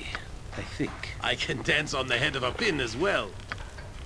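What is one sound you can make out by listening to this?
A lock clicks open.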